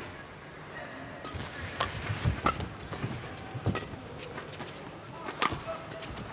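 A shuttlecock is struck sharply by rackets back and forth.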